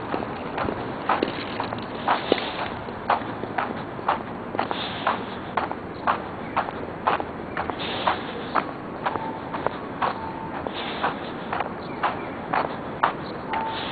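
Footsteps tap steadily on pavement outdoors.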